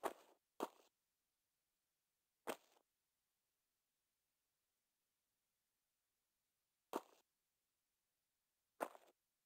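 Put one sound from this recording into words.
Footsteps thud on stone, a few steps apart.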